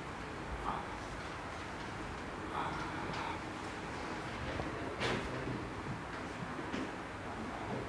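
A felt eraser rubs and squeaks on a whiteboard.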